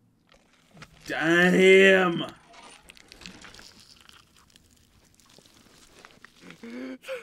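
A young man exclaims loudly into a microphone, then talks quietly.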